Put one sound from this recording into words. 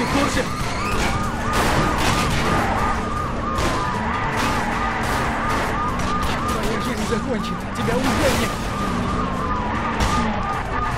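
Police sirens wail in a rapid repeating pattern.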